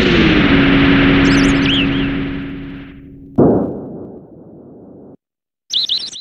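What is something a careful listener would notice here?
A deep rumbling roar from a video game fades away.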